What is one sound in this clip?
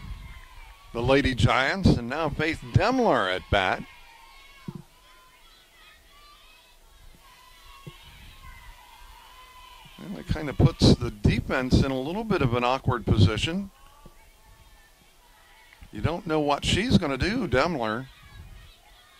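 A group of young girls chant and cheer loudly in short bursts.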